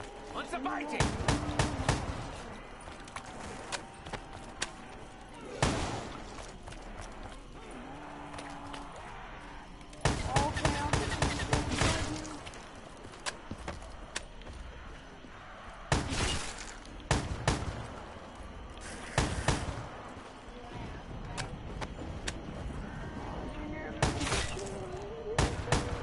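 Guns fire in short bursts with loud bangs.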